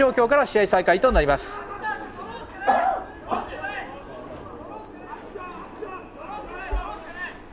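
Young men shout and chant loudly together from the sideline outdoors.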